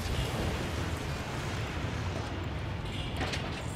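A tall building collapses with a low, rumbling crash.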